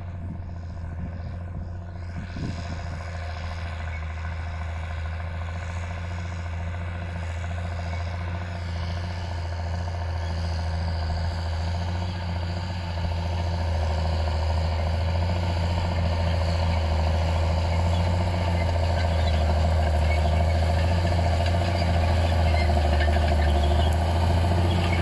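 A cultivator rattles and scrapes through dry stubble.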